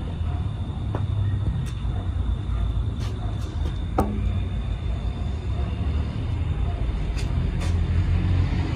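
Footsteps scuff on hard ground nearby.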